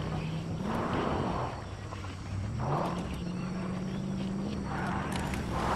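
Tyres rumble over dirt and grass.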